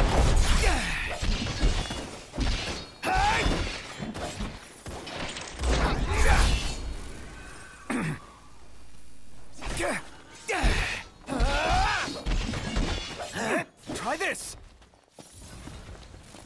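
Metal blades clash and strike in quick bursts.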